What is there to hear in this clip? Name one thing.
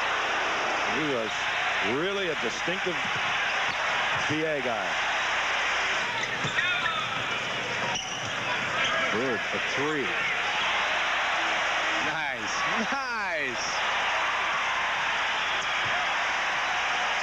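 A large crowd roars in a big echoing arena.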